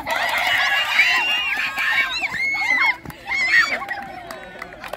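Children shout and cheer excitedly outdoors.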